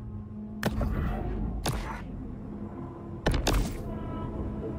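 Short clicks sound in quick succession.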